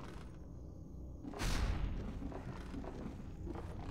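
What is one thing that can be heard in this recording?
Footsteps thud softly on stone.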